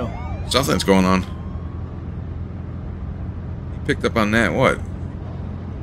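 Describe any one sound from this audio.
A man speaks in a low, serious voice.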